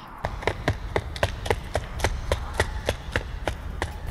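Quick footsteps thud on a wooden boardwalk.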